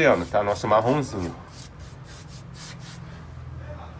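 A brush swishes in short strokes across a rough wall.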